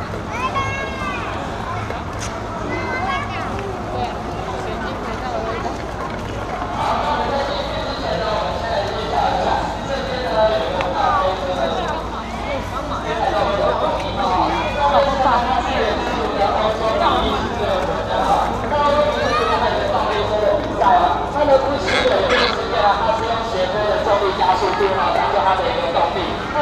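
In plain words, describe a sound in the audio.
A crowd of adults and children chatters all around, growing busier.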